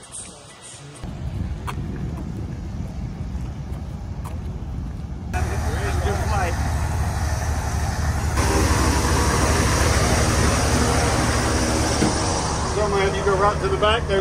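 An airship's engine drones steadily nearby, growing louder up close.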